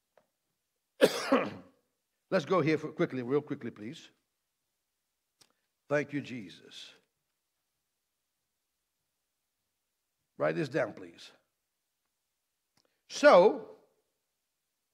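A man reads aloud in short phrases through a microphone, with pauses between them.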